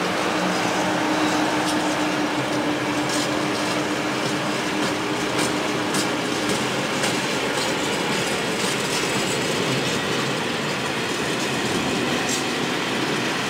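A freight train rumbles past close by with loud, steady roaring.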